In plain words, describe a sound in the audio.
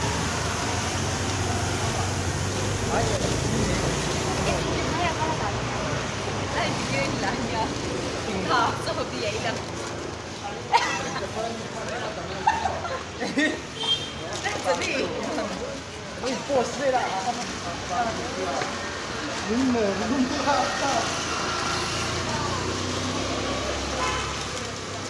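A trowel scrapes and smooths wet cement.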